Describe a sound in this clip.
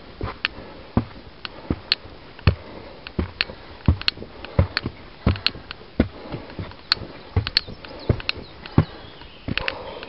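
Footsteps thud on wooden and stone steps outdoors.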